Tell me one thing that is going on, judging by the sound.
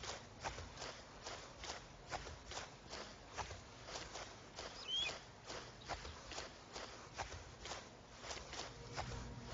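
Footsteps crunch quickly through tall grass.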